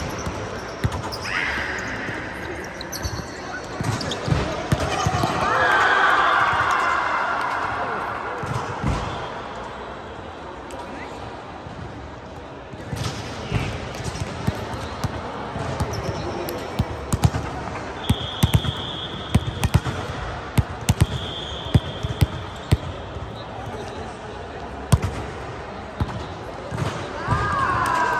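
Young women call out and talk during play.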